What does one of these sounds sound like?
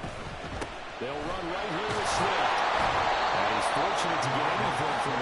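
A stadium crowd roars loudly as a play unfolds.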